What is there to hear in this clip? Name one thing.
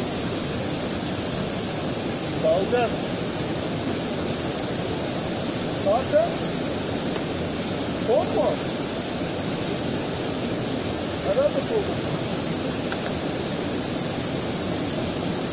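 A waterfall rushes steadily into a pool outdoors.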